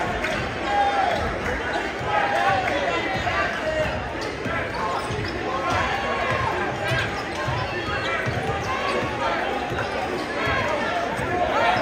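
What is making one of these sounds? A large crowd cheers and chatters loudly in an echoing gym.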